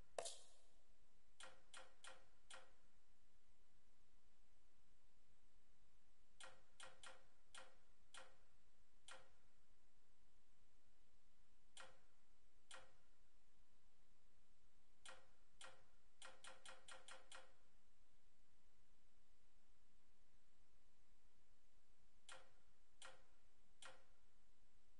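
Short menu clicks tick quickly, one after another.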